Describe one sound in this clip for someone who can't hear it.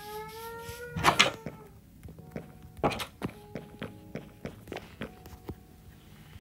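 Footsteps thud steadily across wooden floorboards.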